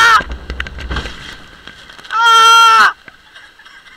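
Water splashes loudly as a boat plunges into a pool.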